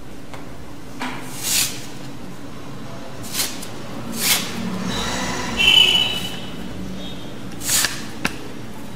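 Fabric rustles and swishes as it is moved about.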